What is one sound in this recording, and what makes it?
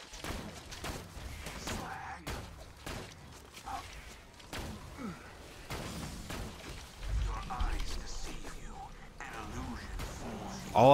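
A rifle fires sharp, loud shots again and again.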